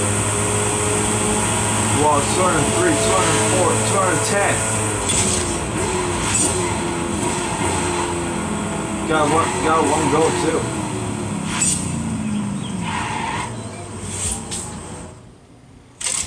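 A race car engine roars from a video game through a television speaker.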